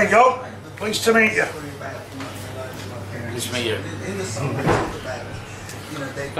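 A middle-aged man talks cheerfully, close by.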